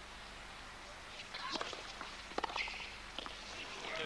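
Tennis rackets strike a ball in a rally.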